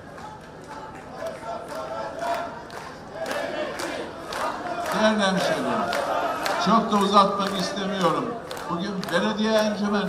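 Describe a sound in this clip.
An older man gives a speech into microphones, speaking forcefully and growing louder.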